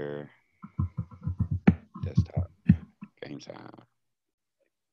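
A young man speaks quickly with animation through a headset microphone.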